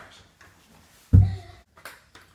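A boy kicks a door with a loud thud.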